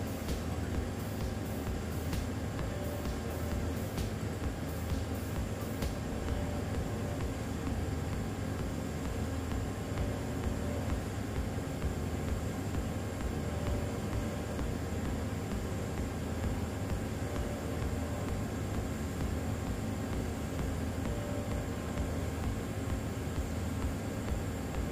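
A welding arc crackles and buzzes steadily.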